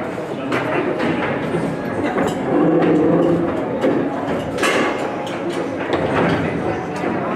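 Foosball rods rattle and plastic figures clack against a ball on a foosball table.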